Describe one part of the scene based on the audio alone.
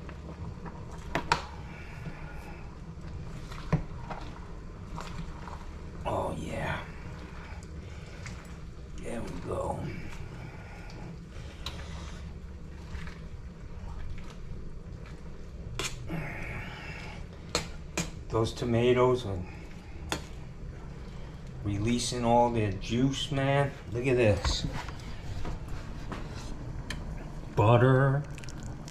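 A spoon stirs food in a metal pot and clinks against its side.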